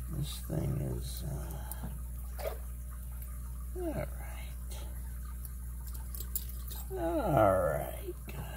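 Small metal tools click and scrape against a lock.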